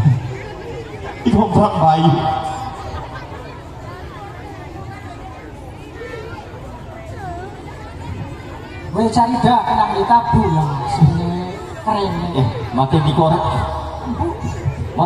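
Music plays loudly through speakers.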